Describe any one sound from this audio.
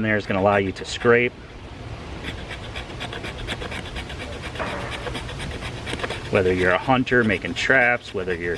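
A knife scrapes and shaves a wooden stick in quick, rasping strokes.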